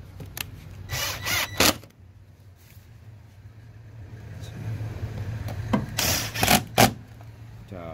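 A power drill whirs in short bursts, driving a screw.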